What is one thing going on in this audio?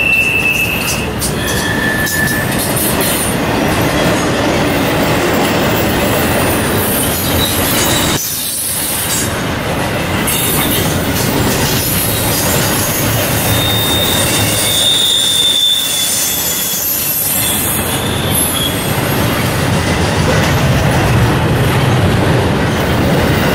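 A double-stack intermodal freight train rumbles past close by.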